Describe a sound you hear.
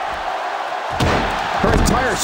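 A body slams down onto a wrestling ring mat with a heavy thud.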